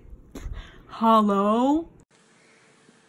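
A young woman groans.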